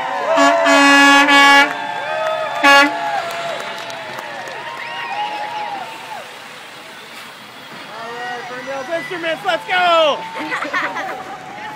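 A box truck rolls past.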